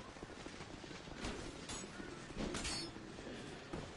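A sword clashes in a fight.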